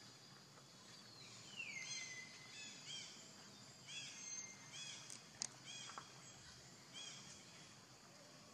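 A young monkey squeaks in short, high calls.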